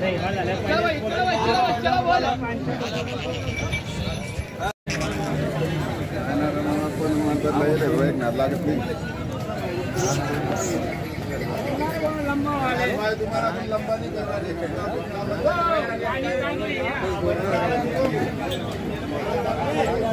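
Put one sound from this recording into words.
Many men talk loudly all around, close by, in a busy outdoor crowd.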